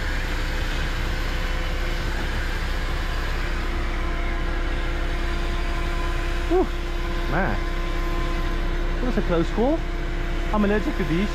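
A large truck engine idles with a steady low hum.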